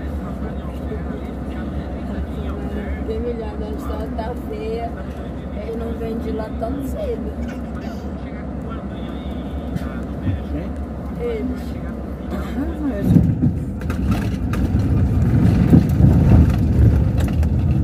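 A vehicle engine rumbles steadily from inside the vehicle.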